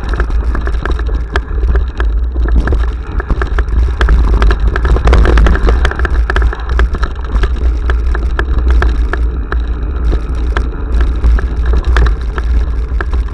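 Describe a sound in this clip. Bicycle tyres rumble and crunch over a rough dirt trail.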